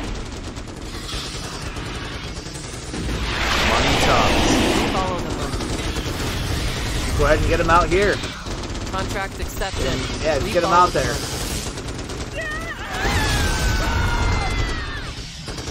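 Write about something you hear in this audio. Gunfire and explosions rumble through a battle.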